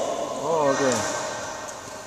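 Shoes squeak sharply on a hard court.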